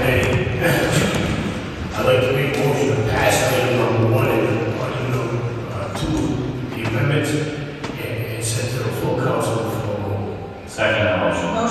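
A man speaks calmly through a microphone in a large echoing room.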